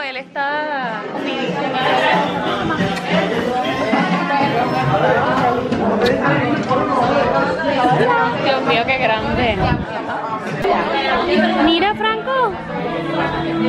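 Young children and adults chatter and shout all around in a busy, noisy room.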